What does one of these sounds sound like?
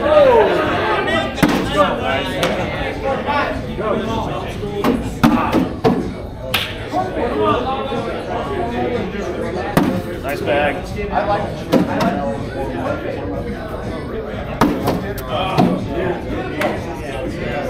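Beanbags land with dull thuds on a wooden board close by.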